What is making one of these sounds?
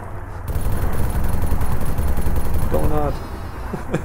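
A heavy machine gun fires rapid bursts up close.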